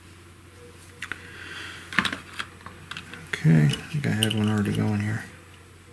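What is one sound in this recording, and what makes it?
Small parts rattle and clatter as hands sort through a plastic box.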